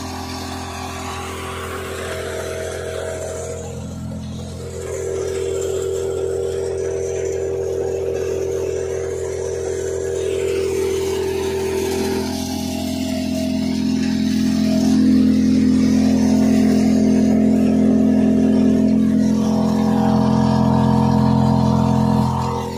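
A threshing machine engine drones steadily and loudly.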